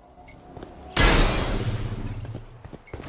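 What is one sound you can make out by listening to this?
A crate bursts open with a loud crash.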